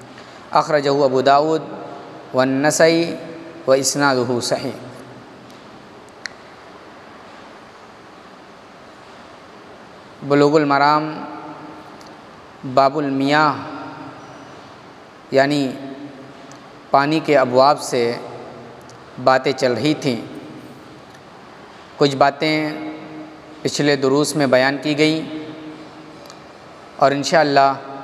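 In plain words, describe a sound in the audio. A man recites in a melodic chanting voice into a close microphone, in phrases with pauses between them.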